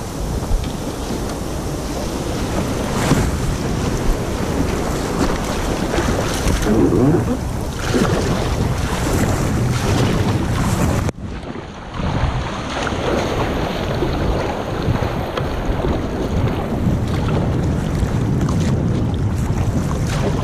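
Surf foams and churns around a kayak.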